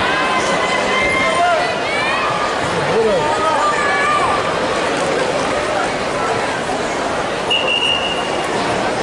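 A crowd chatters and calls out throughout a large echoing arena.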